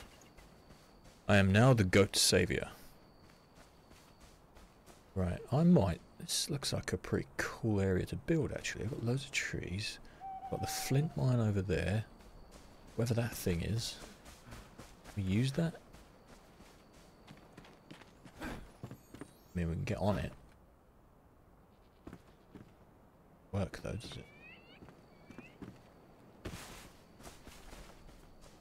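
Footsteps rustle softly through grass.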